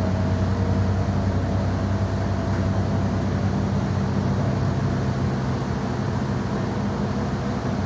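Tyres roll on a wet road with a steady hiss.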